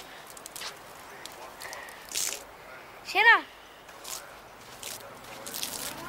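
A man's footsteps crunch on dry forest ground.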